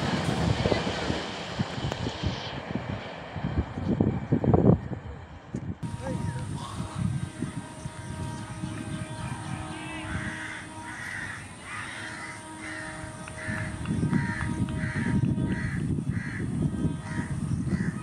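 A train approaches from afar with a low rumble that grows louder.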